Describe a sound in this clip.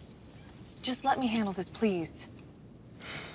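A young woman speaks with animation inside a car.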